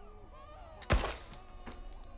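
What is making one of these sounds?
A revolver fires a single shot.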